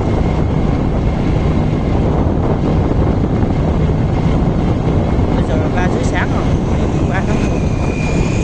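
Wind rumbles steadily against the microphone while moving along an open road.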